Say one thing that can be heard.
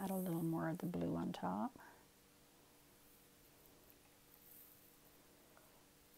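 A stick stirs thick paint in a plastic cup.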